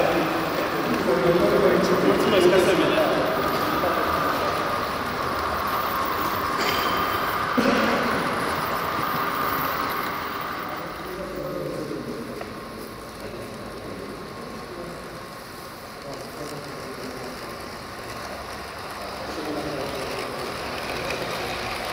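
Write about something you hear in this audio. A model train rumbles and clatters along its rails.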